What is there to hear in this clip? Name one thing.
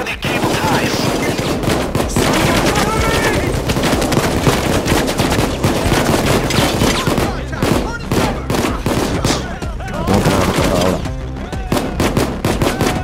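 Rapid gunshots crack and bang.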